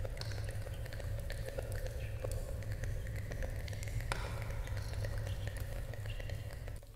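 Hands move and rustle close to a microphone.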